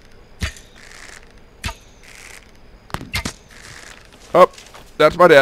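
Sharp blows land in a fight.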